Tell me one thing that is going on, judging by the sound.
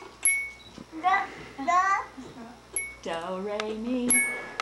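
A woman talks in a high, sing-song voice close by.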